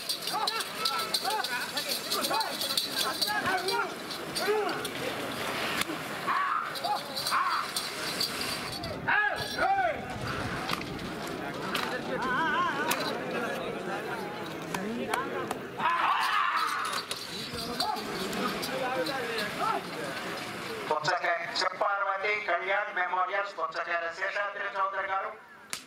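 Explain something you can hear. Several men shout and call out loudly outdoors.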